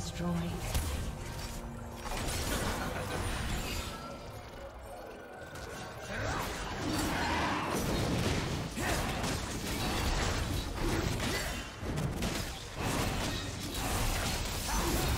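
Magical spell effects whoosh and crackle in a video game.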